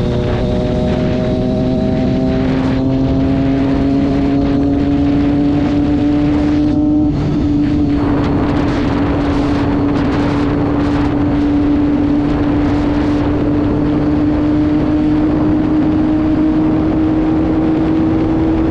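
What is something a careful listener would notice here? A motorcycle engine hums steadily at high speed and slowly rises in pitch.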